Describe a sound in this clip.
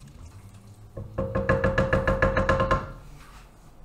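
A spoon scrapes and clatters against a metal pot.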